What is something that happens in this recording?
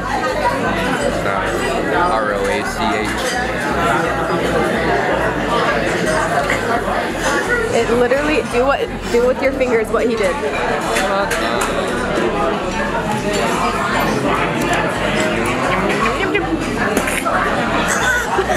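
A crowd murmurs and chatters in a busy, echoing room.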